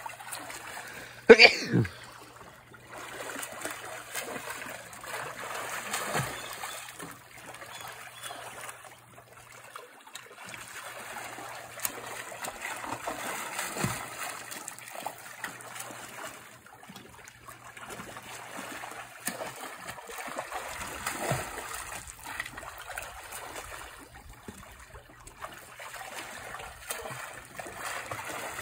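Jets of a pool hum and churn water outdoors.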